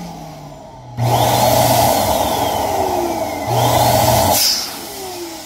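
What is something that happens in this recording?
An electric air pump whirs loudly in short bursts.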